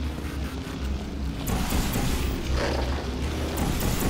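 A portal gun fires with a short electric zap.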